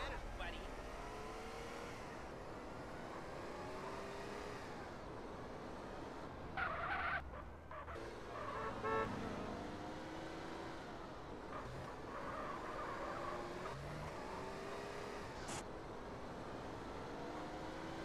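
A car engine revs and hums as a car drives.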